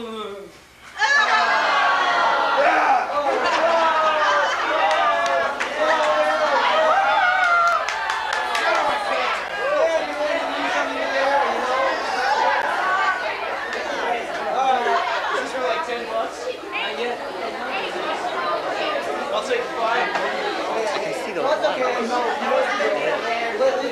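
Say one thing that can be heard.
Several young men laugh and shout over each other.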